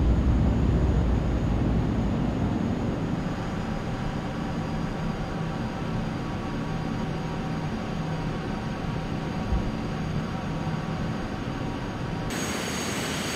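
A jet engine hums and rumbles steadily.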